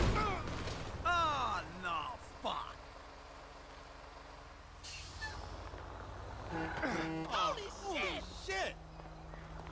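A man shouts in short bursts.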